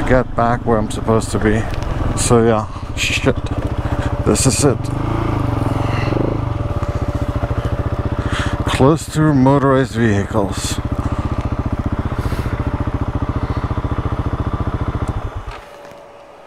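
A motorcycle engine runs with a steady, rumbling throb.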